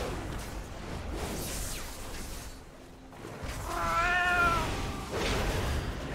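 Magical spells whoosh and crackle in a fierce battle.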